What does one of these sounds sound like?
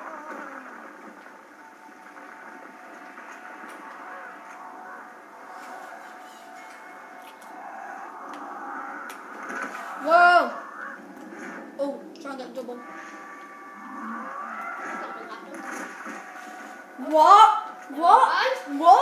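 Game music plays softly through a television speaker.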